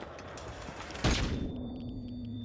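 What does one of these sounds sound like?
A grenade bursts with a loud bang.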